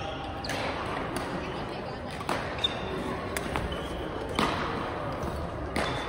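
Badminton rackets strike a shuttlecock with sharp thwacks.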